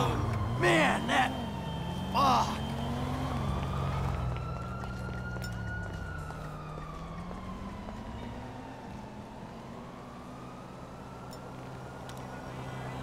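A car engine hums and passes by.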